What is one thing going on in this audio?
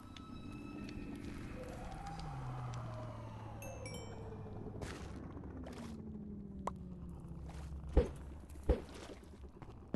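Water splashes as something moves through it.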